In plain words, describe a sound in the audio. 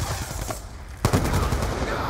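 A rifle fires a loud burst of shots.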